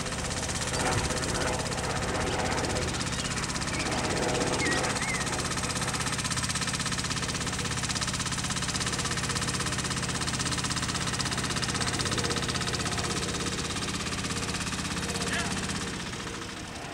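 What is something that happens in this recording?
A motor roller engine drones steadily and fades as it moves away.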